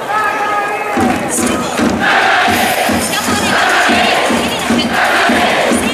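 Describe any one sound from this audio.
A large stadium crowd sings and chants loudly outdoors.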